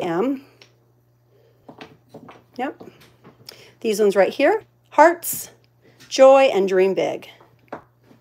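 Small wooden blocks clack and knock softly against each other and a table.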